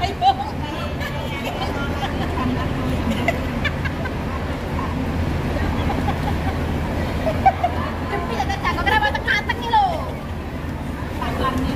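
Several women chat and laugh close by.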